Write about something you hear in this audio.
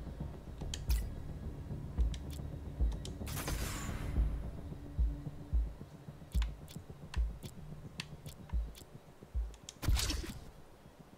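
Short electronic menu clicks sound as a selection moves between options.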